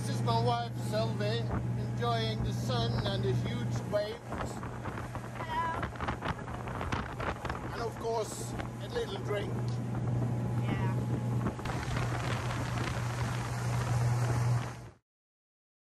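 Water rushes in a boat's wake.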